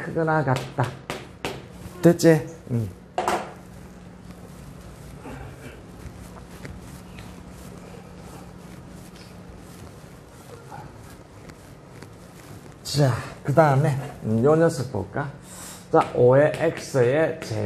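A middle-aged man speaks calmly, as if explaining, close by.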